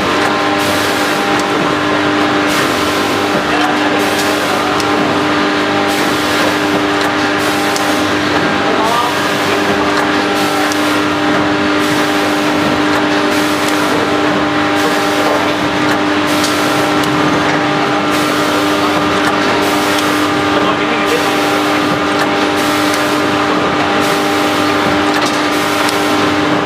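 A packaging machine's sealing jaws clack shut in a steady rhythm.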